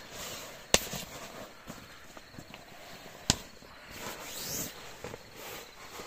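Hands press and rustle a foam sleeping mat.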